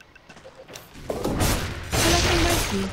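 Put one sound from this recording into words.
Game weapons clash and spells burst in a short fight.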